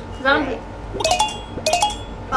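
A game plays short bright chiming blips.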